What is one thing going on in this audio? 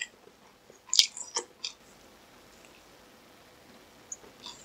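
A young man bites into crispy fried chicken with a crunch.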